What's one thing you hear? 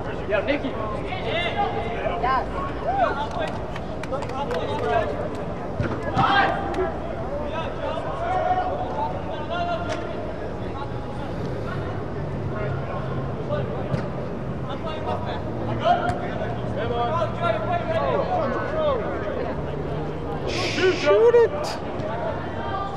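Young women shout and call to each other in a large echoing hall.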